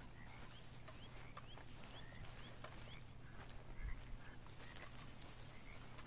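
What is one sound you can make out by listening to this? Footsteps walk over grass.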